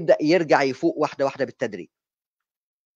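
A man speaks calmly into a microphone, heard through an online call.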